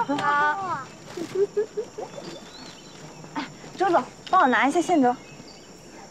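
A young woman speaks excitedly, her voice rising and falling in a playful sing-song.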